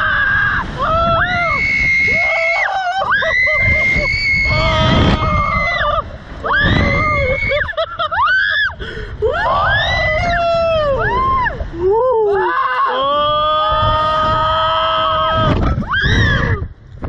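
A young girl screams loudly and shrieks up close.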